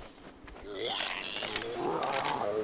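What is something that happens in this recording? A submachine gun is reloaded with metallic clicks.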